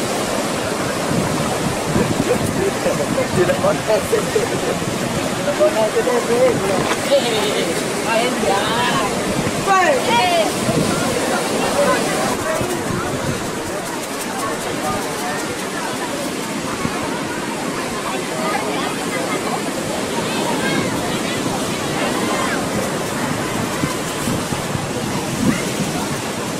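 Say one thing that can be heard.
Waves crash and roar steadily on rocks nearby.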